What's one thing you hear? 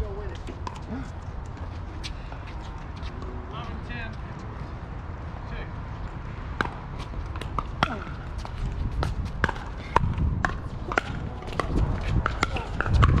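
Paddles sharply pop against a plastic ball outdoors.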